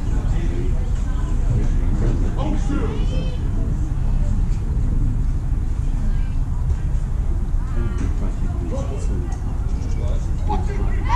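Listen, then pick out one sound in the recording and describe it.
Men call out and talk in the distance.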